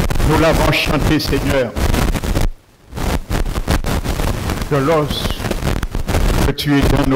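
A middle-aged man preaches with animation through a headset microphone.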